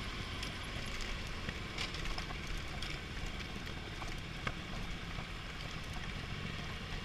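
Wind rumbles loudly against a helmet.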